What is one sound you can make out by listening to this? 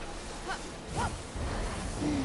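Water splashes loudly.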